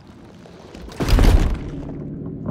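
A heavy blow lands with a loud thud.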